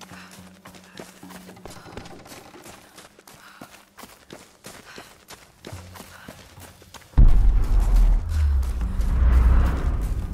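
Footsteps crunch on dirt and gravel at a running pace.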